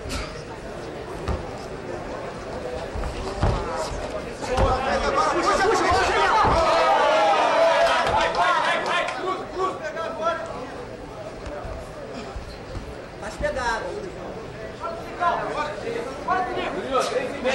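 A crowd shouts and cheers loudly in the background.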